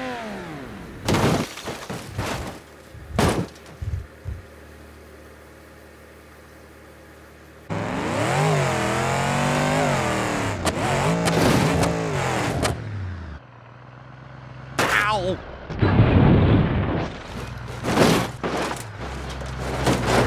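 A car crashes with loud metallic bangs.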